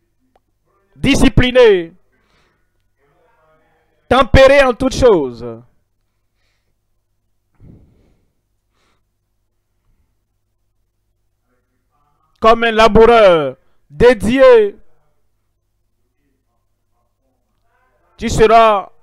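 A man speaks loudly and with feeling through a microphone, in short bursts with long pauses.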